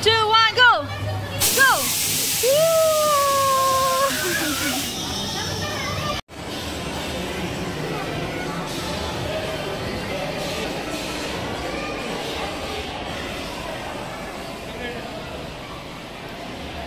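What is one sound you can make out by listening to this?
Children and adults chatter in a busy, echoing indoor space.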